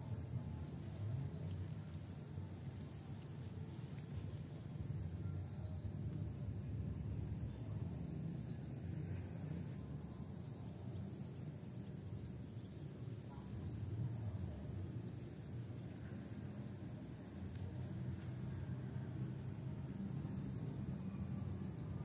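Tent fabric rustles as it is handled.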